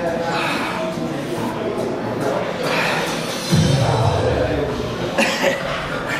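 A man groans and strains with effort.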